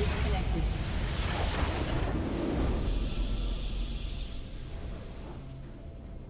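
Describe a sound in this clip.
A large explosion booms and rumbles, then slowly fades.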